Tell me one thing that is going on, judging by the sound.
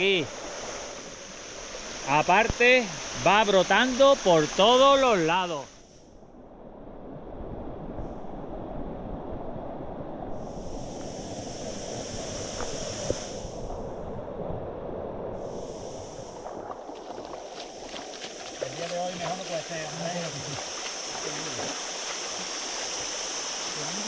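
A stream rushes and gurgles over stones outdoors.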